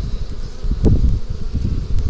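A metal hive tool scrapes against wooden frames.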